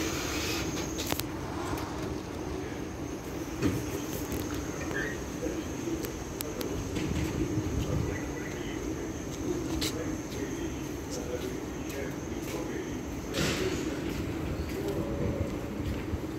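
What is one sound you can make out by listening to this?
A tram starts moving and rolls slowly past with a low rumble.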